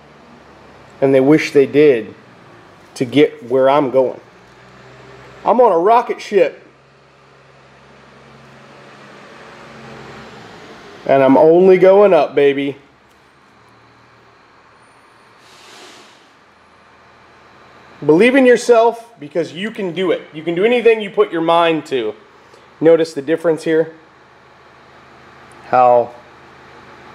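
A middle-aged man speaks calmly close by, in short bursts with pauses.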